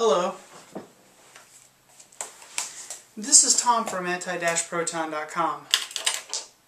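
Paper rustles as a man handles cards.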